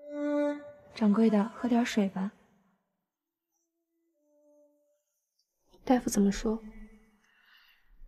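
A young woman speaks softly and anxiously, close by.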